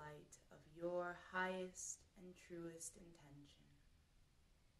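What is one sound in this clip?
A young woman speaks slowly and calmly, close by.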